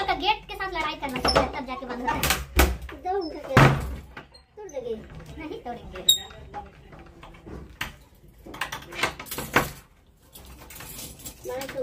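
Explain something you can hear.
A key rattles in a door lock.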